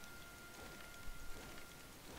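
A gun's metal parts click and clack as it is handled.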